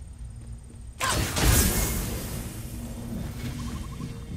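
A loud whooshing rush starts suddenly and fades.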